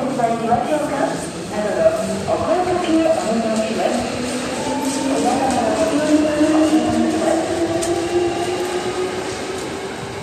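Train wheels click and clatter over the rail joints.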